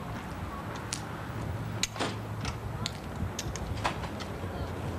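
A glass door clicks and swings open.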